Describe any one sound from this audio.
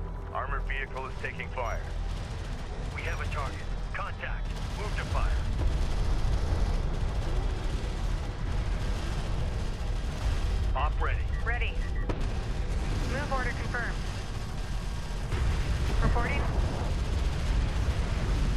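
Weapons fire in rapid bursts during a battle.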